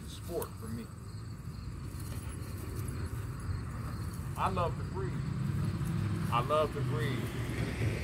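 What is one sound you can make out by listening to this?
A man calls out to a dog nearby.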